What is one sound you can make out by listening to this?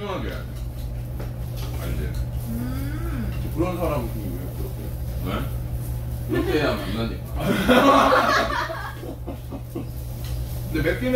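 Young men and women talk and chat together nearby.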